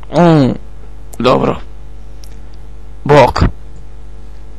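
A man speaks calmly and briefly, close by.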